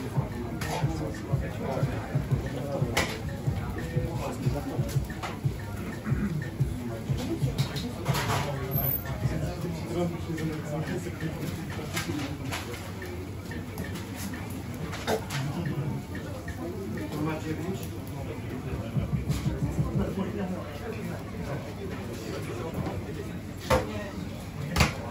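Metal tongs clink against food trays.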